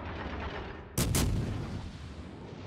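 Heavy naval guns fire a loud booming salvo.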